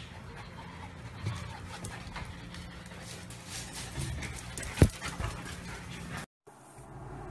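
Dog paws patter and scrabble on a hard floor.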